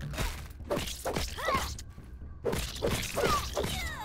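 A spiked club strikes an ant with wet, squelching hits.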